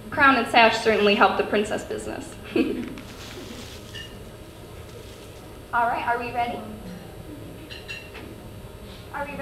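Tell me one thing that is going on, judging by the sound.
A young woman speaks into a microphone over loudspeakers in a large echoing hall.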